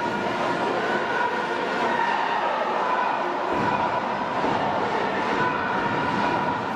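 A large crowd cheers and chants steadily in a big stadium.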